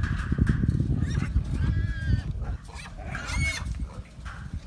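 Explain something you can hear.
Wild hogs squeal and grunt close by.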